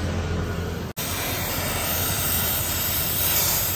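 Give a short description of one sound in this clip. A welding torch hisses and crackles.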